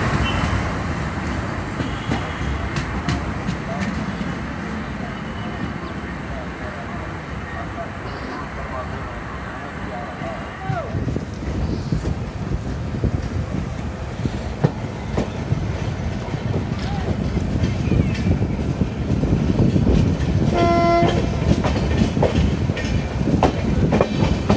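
A train rumbles and clatters along the rails.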